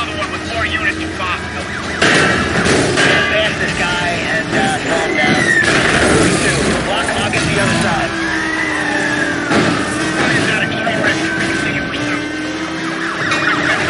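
A car engine roars at high revs.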